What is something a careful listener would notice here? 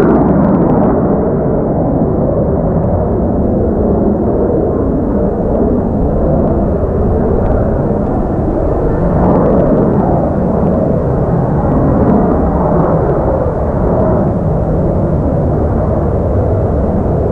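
A jet engine roars loudly and steadily overhead.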